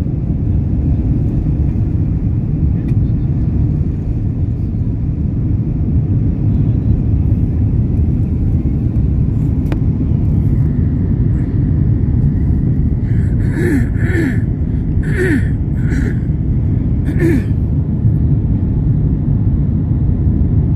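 Jet engines roar loudly and steadily as an airliner takes off and climbs.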